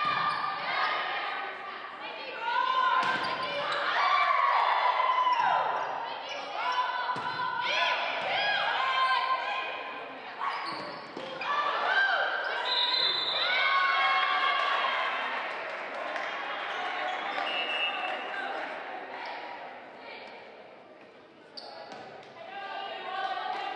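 Sneakers squeak sharply on a hard gym floor.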